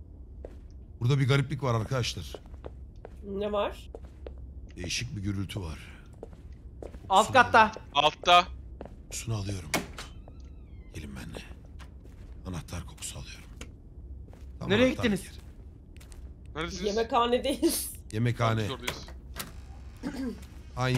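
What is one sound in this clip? Several young men talk and joke with animation over headset microphones.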